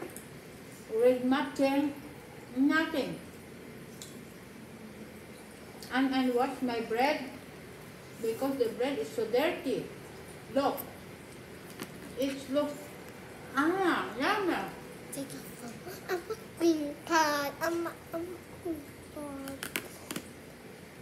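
A young girl talks with animation close to a microphone.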